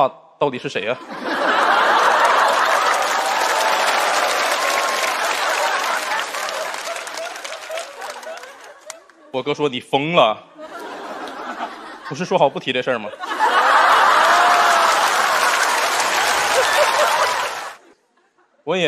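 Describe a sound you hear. An audience laughs and applauds loudly.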